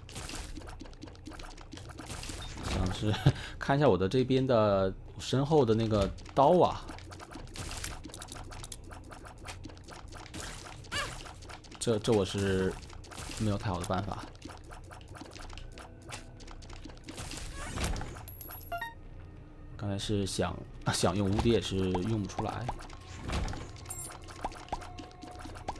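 Video game shots pop and splat rapidly.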